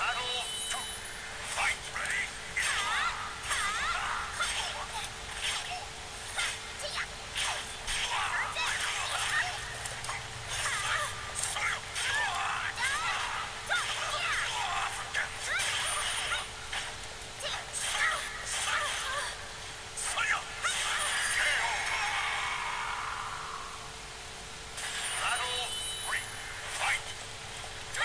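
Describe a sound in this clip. Metal blades clash and strike again and again.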